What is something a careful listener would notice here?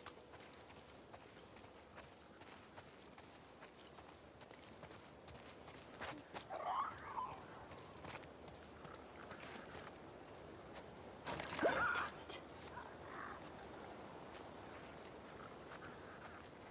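Footsteps rustle through wet grass and pavement.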